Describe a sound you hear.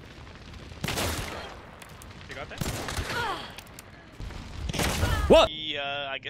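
Gunshots bang loudly, several times.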